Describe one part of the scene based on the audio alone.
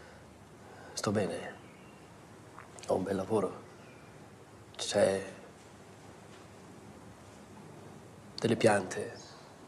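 A middle-aged man speaks firmly in short bursts with pauses.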